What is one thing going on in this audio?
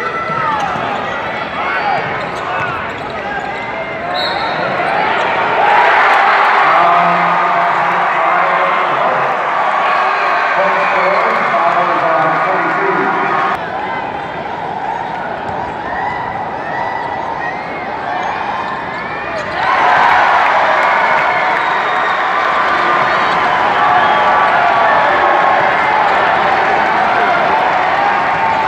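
A large crowd cheers and shouts in a big echoing arena.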